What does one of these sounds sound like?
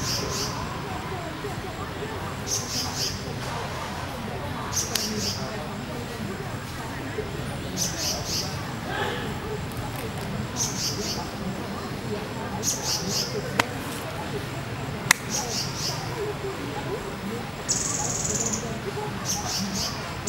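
A small bird chirps in short, high, repeated bursts.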